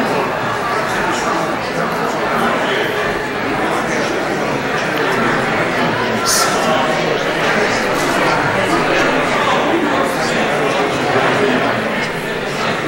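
A choir of men and women sings together in a large echoing hall.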